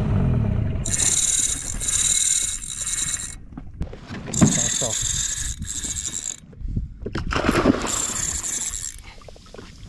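A fishing reel's drag buzzes in short bursts.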